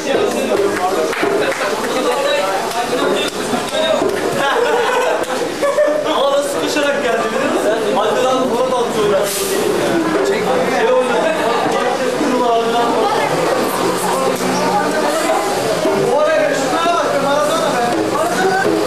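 Several young men talk and laugh loudly close by.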